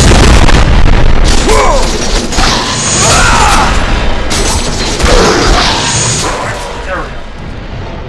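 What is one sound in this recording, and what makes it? Fiery blades whoosh and crackle through the air.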